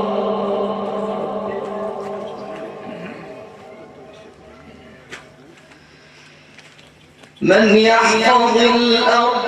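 An elderly man chants in long, drawn-out notes through a microphone, fading and then swelling loudly again.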